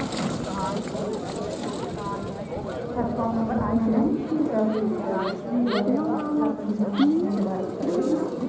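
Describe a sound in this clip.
A horse trots across grass, hooves thudding softly.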